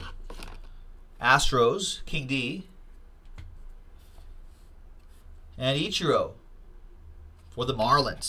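Trading cards shuffle and slide between fingers.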